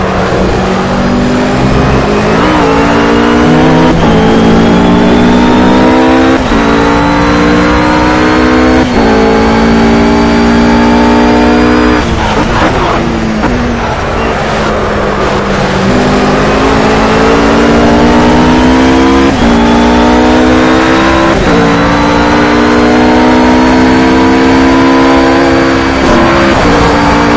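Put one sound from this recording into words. A GT3 race car engine accelerates hard, shifting up through the gears.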